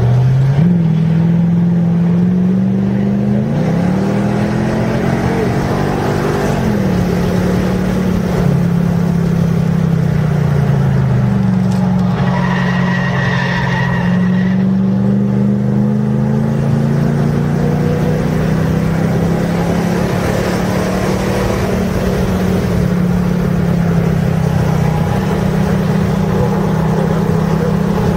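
A car engine roars close by, revving up through the gears and easing off into corners.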